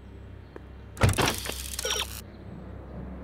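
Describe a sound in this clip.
A short electronic whoosh and chime sounds as a game menu opens.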